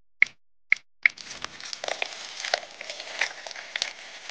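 Thick liquid patters and crackles into a plastic cup.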